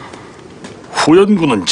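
An older man speaks firmly.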